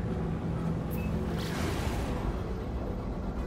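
A whooshing rush swells as the craft speeds up.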